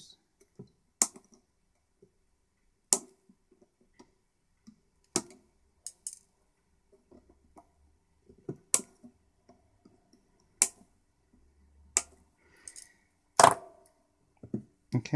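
Small components click and tap as a circuit board is handled.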